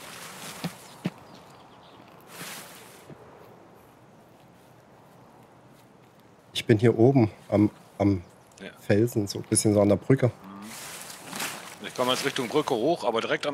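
Leafy bushes rustle as someone pushes through them.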